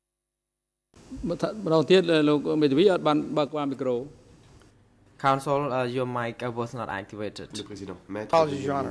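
A man speaks steadily through a microphone in a large room.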